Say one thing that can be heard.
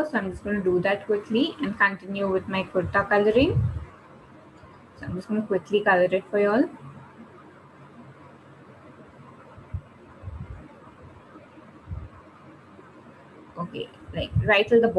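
A woman talks calmly through a microphone.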